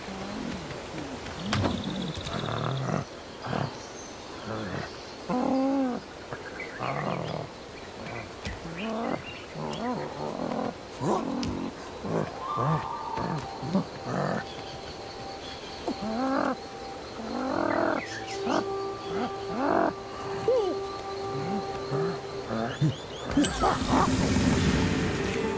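Chimpanzees hoot and grunt close by.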